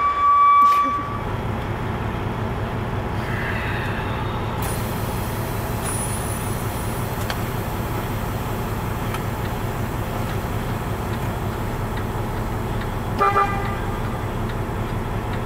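A vehicle engine idles with a steady low rumble.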